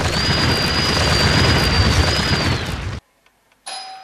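A wall cracks and crumbles with a loud rushing crash.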